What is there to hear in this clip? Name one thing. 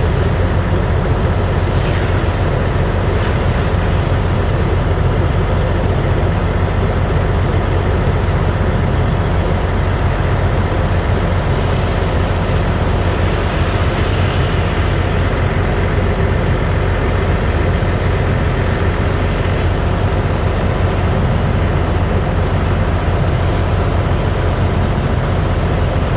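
Water gushes from a hose and splashes onto wet sand.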